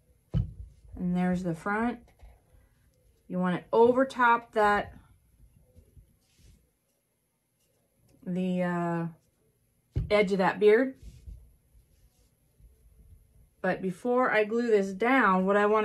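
A woman talks calmly, close by.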